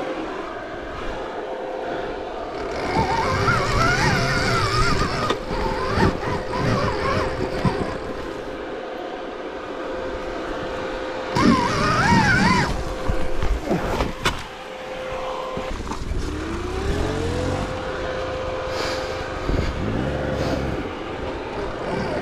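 A dirt bike engine revs and idles close by.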